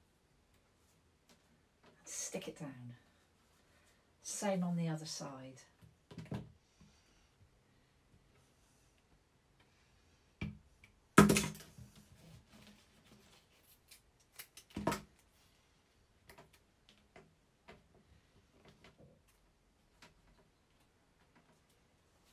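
Paper rustles and slides under hands.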